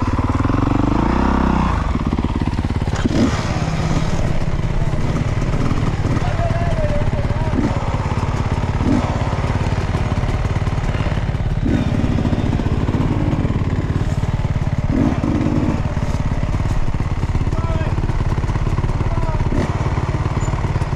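Another dirt bike engine revs nearby as it climbs a trail.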